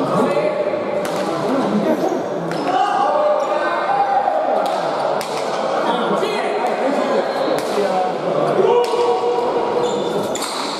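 A hard ball smacks sharply against a wall in a large echoing hall, again and again.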